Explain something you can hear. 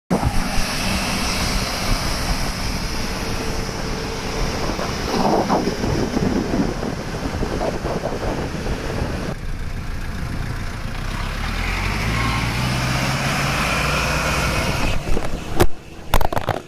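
A jeep engine rumbles as it drives past.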